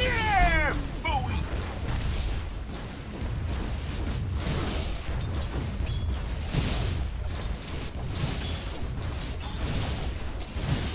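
Magic spells whoosh and crackle in a fantasy battle game.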